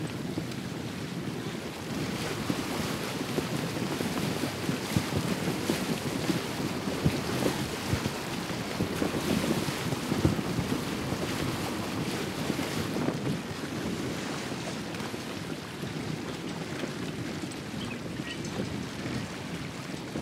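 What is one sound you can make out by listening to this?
Water splashes and rushes against the hull of a moving boat.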